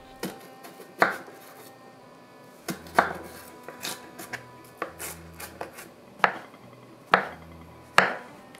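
A knife chops on a wooden board with sharp knocks.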